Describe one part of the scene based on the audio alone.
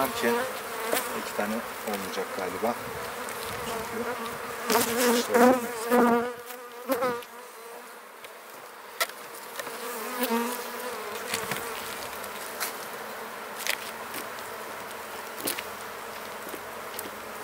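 A wooden hive frame knocks and scrapes as it is lifted out.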